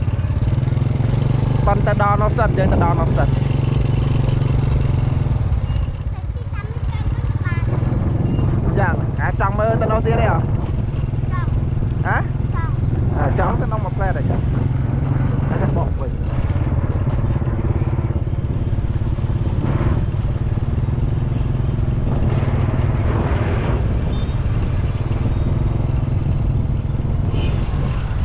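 Other motorbikes pass by nearby.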